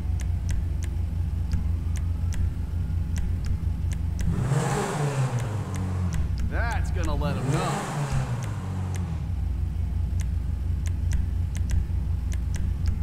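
Menu clicks tick at a steady pace.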